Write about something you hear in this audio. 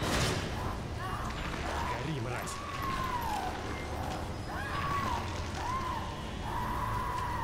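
A creature groans and wails nearby.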